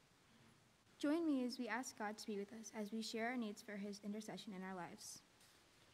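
A young woman speaks calmly into a microphone in a large echoing hall.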